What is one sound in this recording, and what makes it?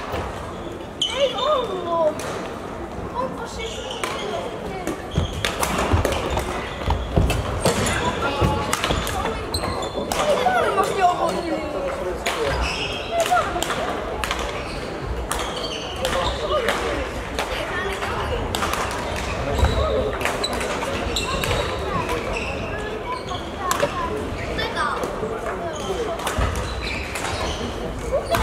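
Children's voices chatter and call out across the hall.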